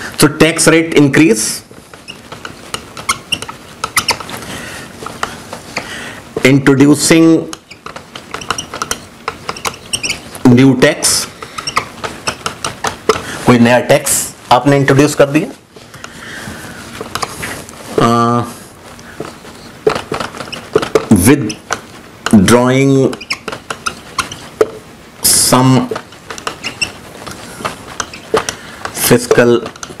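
A marker squeaks and taps against a whiteboard.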